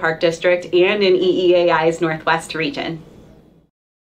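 A young woman speaks cheerfully into a nearby microphone.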